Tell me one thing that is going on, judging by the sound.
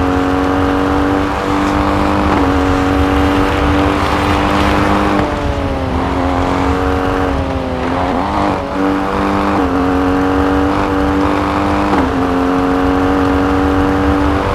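Tyres rumble over snow and gravel.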